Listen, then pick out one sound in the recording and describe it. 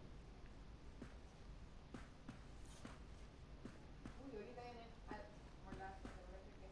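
Footsteps walk slowly across a wooden floor.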